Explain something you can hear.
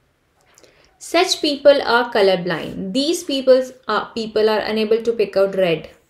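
A young woman speaks clearly into a close microphone, explaining.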